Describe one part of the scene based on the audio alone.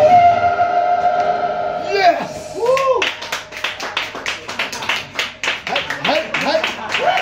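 An electric guitar holds a loud ringing note, then bends and slides in pitch.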